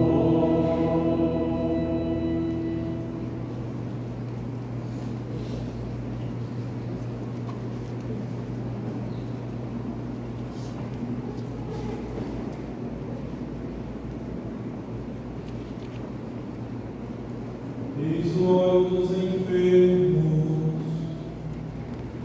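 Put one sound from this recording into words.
A man chants through a loudspeaker in a large echoing hall.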